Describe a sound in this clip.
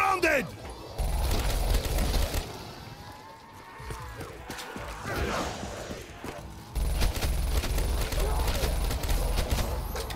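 A rapid-firing gun shoots in loud bursts.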